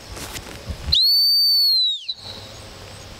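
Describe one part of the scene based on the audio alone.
A sharp whistle blows once with a falling end.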